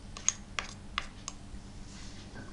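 A small spoon taps against a dish.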